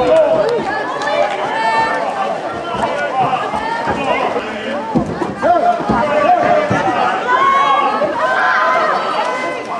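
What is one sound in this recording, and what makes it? Water splashes as swimmers play in a pool.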